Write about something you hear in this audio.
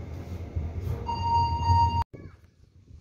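An elevator chime rings on arrival.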